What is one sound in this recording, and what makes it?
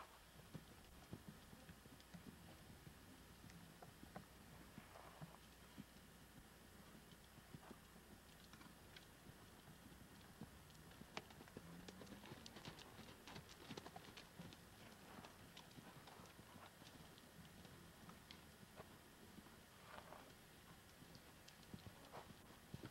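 A horse's hooves thud softly on sand at a steady trot.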